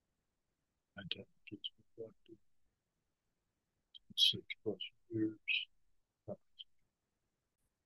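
A middle-aged man speaks close to a webcam microphone in short bursts.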